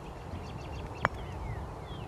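A golf club clicks sharply against a ball.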